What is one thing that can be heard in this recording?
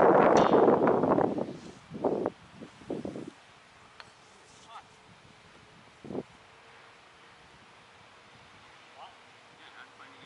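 A tennis ball is hit back and forth with rackets at a distance.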